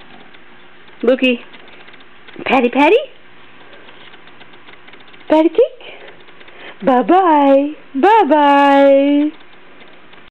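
A baby babbles and squeals in short bursts close by.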